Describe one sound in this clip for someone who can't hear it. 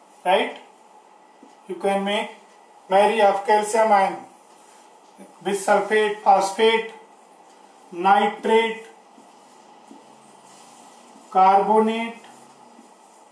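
A middle-aged man speaks nearby in short, calm phrases with pauses.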